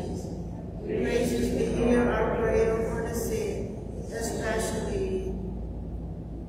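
An elderly man reads aloud through a microphone in an echoing hall.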